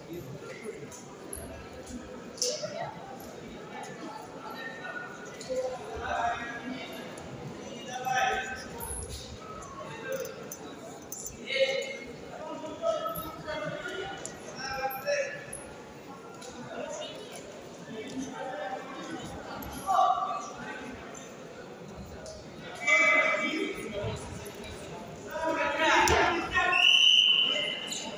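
Wrestlers' feet thud and shuffle on a mat.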